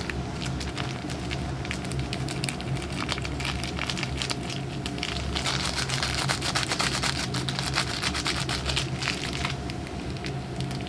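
Food sizzles and crackles loudly in a hot pan.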